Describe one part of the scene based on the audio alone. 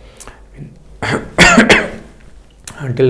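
A middle-aged man coughs into his hand.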